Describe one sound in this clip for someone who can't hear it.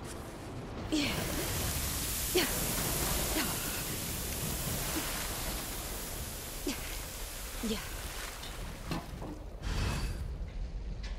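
Water hisses loudly from a fire hose.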